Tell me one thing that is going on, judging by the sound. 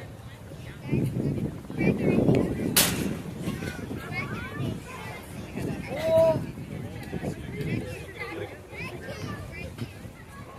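Children and adults shout and cheer outdoors.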